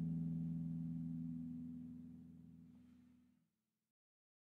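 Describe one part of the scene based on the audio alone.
A low chord on a many-stringed guitar rings out and slowly fades away.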